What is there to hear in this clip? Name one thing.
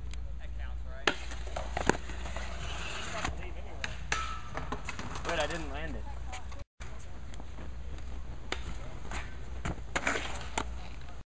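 A skateboard clatters hard onto concrete.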